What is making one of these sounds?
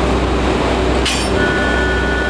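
A locomotive couples to a carriage with a sharp metallic clank.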